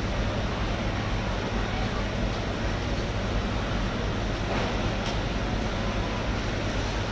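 Rubber boots shuffle on a wet concrete floor.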